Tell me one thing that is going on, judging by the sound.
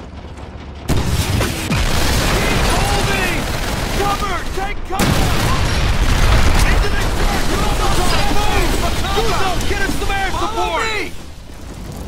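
Rifle shots crack rapidly.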